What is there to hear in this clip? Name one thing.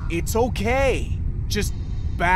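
A man speaks sternly, close by.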